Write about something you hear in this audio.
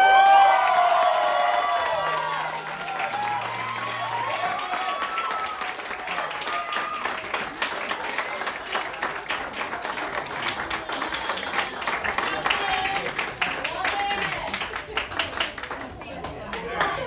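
A group of people applauds in a room.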